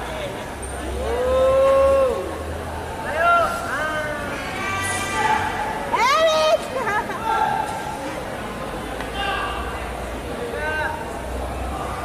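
Young men let out sharp, drawn-out shouts nearby.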